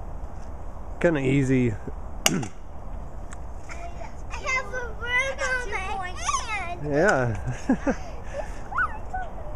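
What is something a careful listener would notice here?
A young girl talks and laughs close by.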